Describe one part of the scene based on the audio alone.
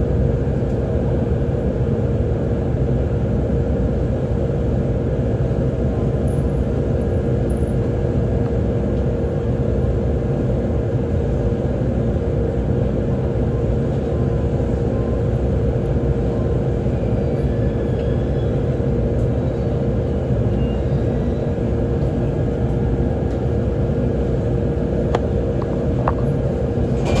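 A train rumbles steadily from inside a carriage as it slows into a station.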